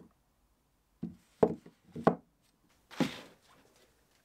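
A plastic tub knocks on a wooden bench.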